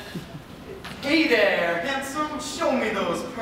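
A man speaks loudly and with animation in a large hall.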